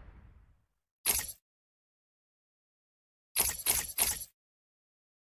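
Menu selections click and chime.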